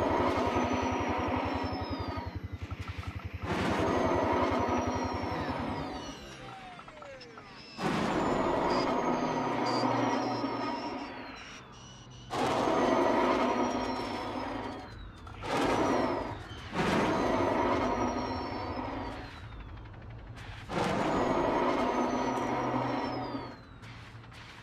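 A spacecraft's engines roar in repeated bursts, surging and fading.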